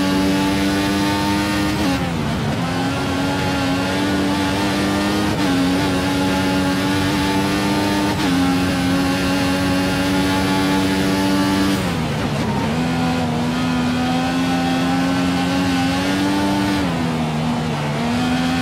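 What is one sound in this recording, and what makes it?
A racing car engine screams at high revs, dropping sharply with each gear change and braking.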